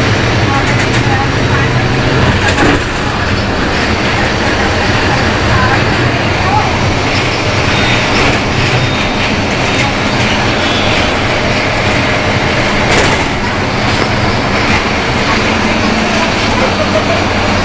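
A bus rattles and clatters over the road.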